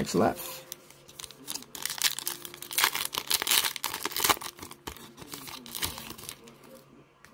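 Plastic wrappers crinkle and rustle close by.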